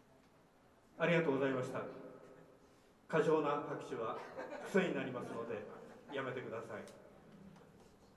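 A man strums chords on an acoustic guitar in short bursts.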